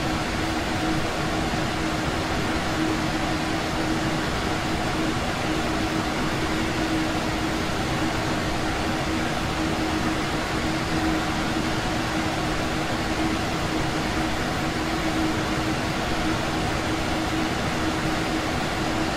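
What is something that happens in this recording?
An electric locomotive motor hums steadily.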